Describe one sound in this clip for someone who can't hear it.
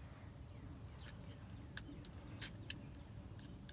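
A toy blaster fires with sharp clicks several times.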